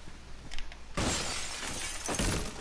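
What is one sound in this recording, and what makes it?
A wall bursts apart with a loud crash.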